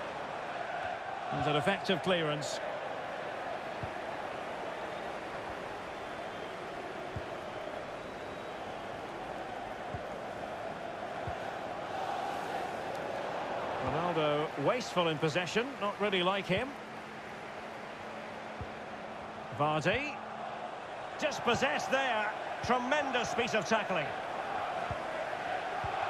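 A large stadium crowd murmurs and hums steadily.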